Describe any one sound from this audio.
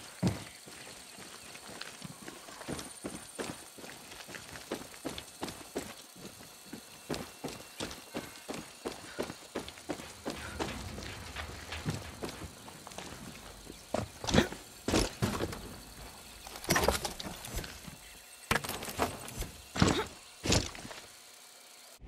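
Footsteps tread on a hard path at a steady walking pace.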